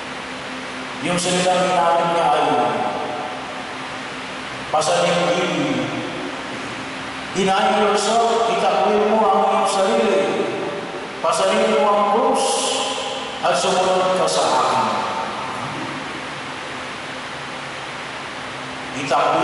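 A man speaks calmly into a microphone over a loudspeaker, echoing through a large hall.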